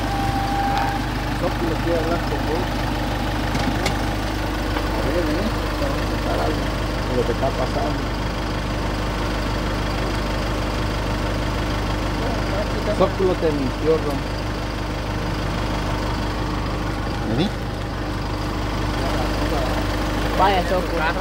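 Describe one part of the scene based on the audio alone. A man talks nearby, leaning into a car window.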